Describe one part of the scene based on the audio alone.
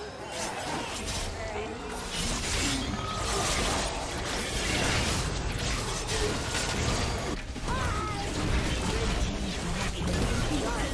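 Spell effects crackle and whoosh in a busy video game battle.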